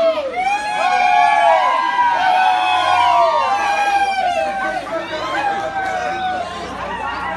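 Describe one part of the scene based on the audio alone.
A crowd of spectators cheers and shouts loudly.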